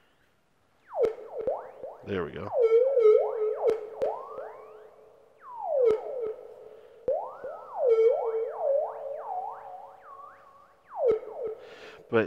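A synthesizer plays plucky, bubbling notes with gliding pitch.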